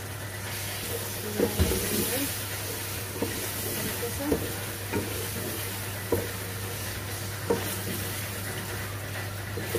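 A spatula scrapes and knocks against a metal pot while stirring.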